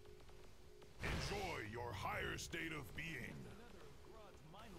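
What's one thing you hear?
A loud magical burst whooshes and crackles.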